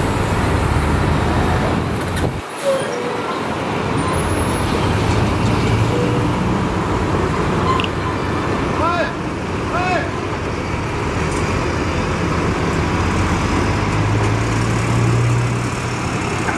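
A bulldozer engine rumbles steadily close by.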